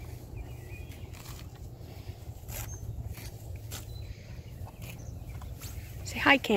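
A horse tears and chews grass.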